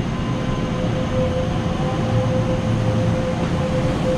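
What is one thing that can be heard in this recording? A train starts moving and rolls slowly away.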